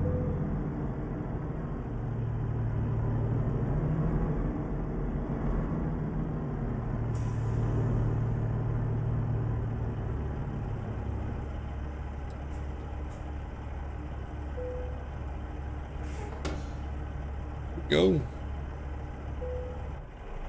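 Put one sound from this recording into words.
A truck engine rumbles steadily and idles down as the truck slows to a stop.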